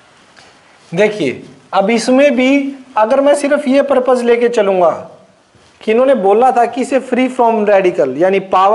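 A man speaks clearly and steadily, close by.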